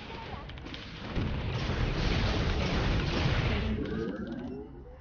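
Weapons fire and explosions boom in a game battle.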